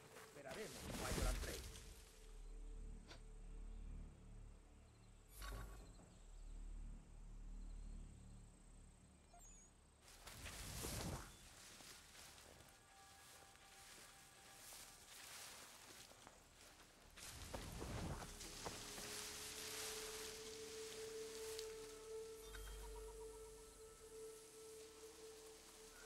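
Leaves and undergrowth rustle as someone creeps through bushes.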